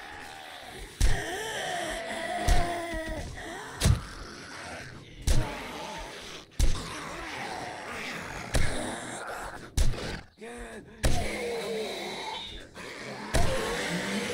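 Heavy blows thud sharply, one after another.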